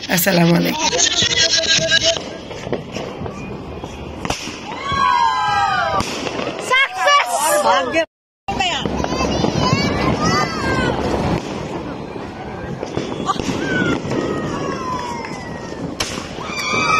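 Firework rockets whistle shrilly as they shoot into the sky.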